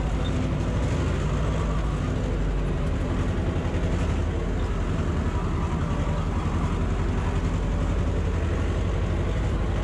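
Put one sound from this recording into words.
A tractor engine rumbles steadily, heard from inside its cab.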